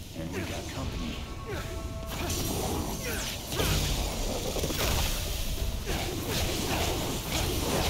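Flames burst and roar in loud blasts.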